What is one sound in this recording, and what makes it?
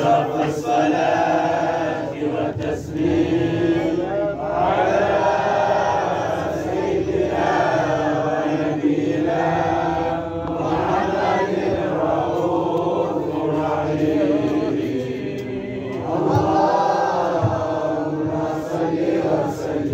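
A group of men chant a slow, melodic song together.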